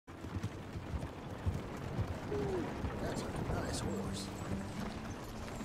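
Horse hooves thud steadily on a dirt track.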